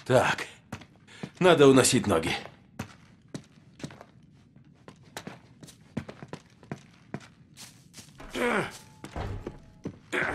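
Footsteps crunch over loose debris at a walking pace.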